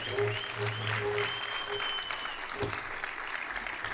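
A keyboard instrument plays sustained notes through a loudspeaker.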